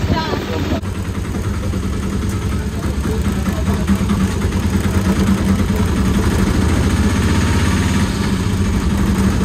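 A small motorised rickshaw engine putters and rattles steadily.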